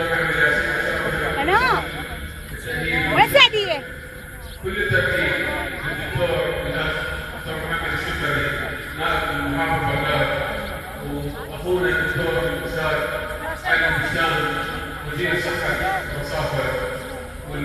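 A crowd of men and women chatters and calls out nearby outdoors.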